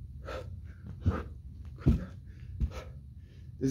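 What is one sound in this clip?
Feet thump on a carpeted floor as a man jumps.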